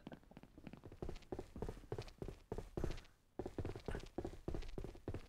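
Footsteps thud on wooden boards and stairs.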